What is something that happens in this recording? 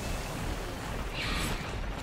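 A magical portal hums and crackles with energy.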